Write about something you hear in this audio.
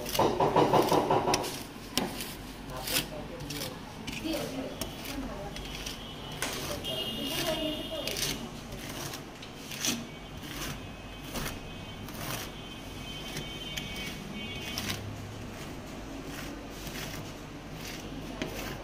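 Metal spatulas scrape and tap on a metal plate.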